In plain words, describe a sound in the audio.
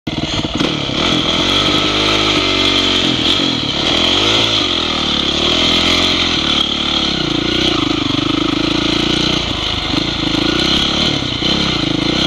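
A dirt bike engine revs up and down while riding a dirt trail.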